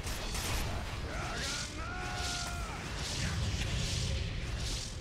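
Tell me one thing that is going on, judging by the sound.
Magic spell effects whoosh and crackle in a battle.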